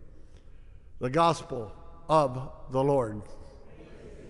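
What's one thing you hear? An elderly man sings a few notes through a microphone.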